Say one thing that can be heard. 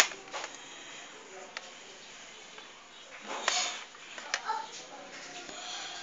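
Hard plastic parts click and rattle as they are handled close by.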